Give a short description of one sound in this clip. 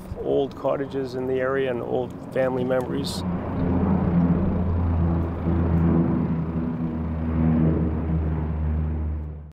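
A propeller plane's engines drone steadily overhead as it flies past.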